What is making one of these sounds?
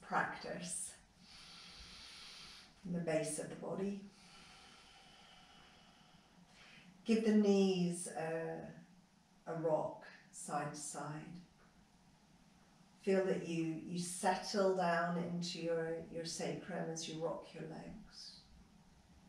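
A woman speaks calmly and slowly, close by, with pauses.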